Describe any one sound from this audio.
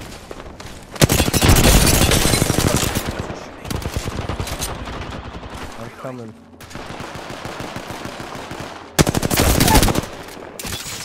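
Rapid gunfire bursts loudly.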